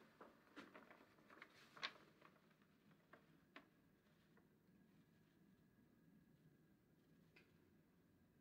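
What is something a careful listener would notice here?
Papers rustle and crinkle in hands.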